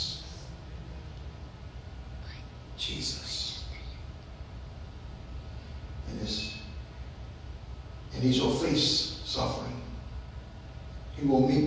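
A man speaks slowly and calmly into a microphone in an echoing hall.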